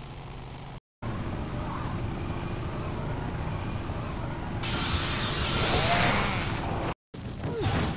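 Two motorcycle engines roar side by side.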